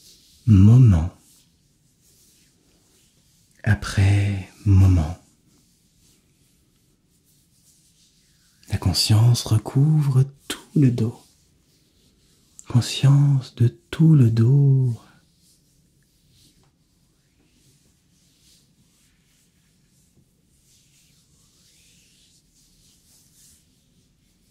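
A man rubs his hands together softly.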